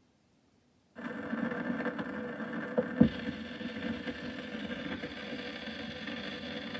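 A gramophone plays an old record with crackle and hiss.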